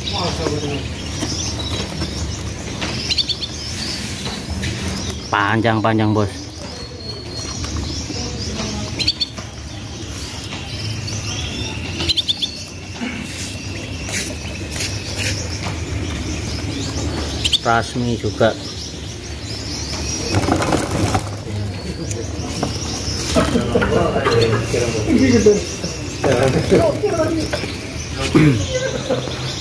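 Small caged birds chirp and twitter close by.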